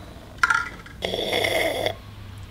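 A man slurps a sip of hot coffee.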